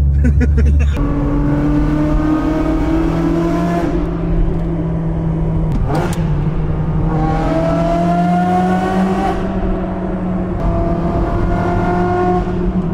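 A sports car engine roars and revs up through the gears, echoing in a tunnel.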